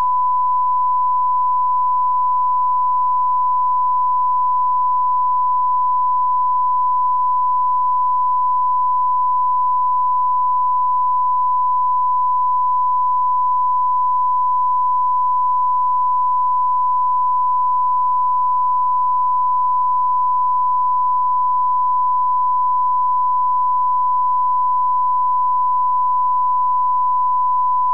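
A steady, high-pitched test tone sounds without a break.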